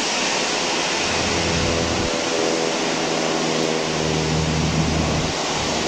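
A jet engine's low rumble swells as the airliner turns away.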